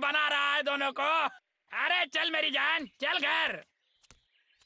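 A man talks quickly in an animated, exaggerated voice.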